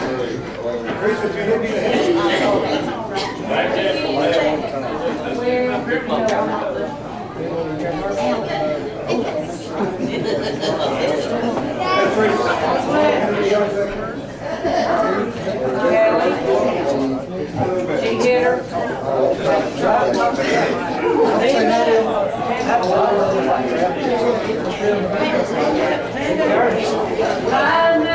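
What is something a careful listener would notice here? A crowd of men and women talk and pray aloud all at once in a large room.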